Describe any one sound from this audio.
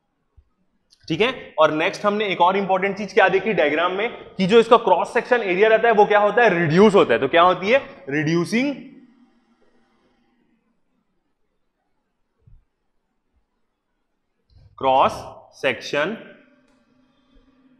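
A man speaks with animation into a nearby microphone, explaining.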